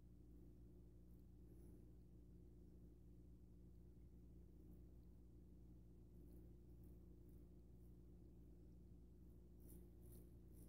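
A razor scrapes softly across stubble in short strokes.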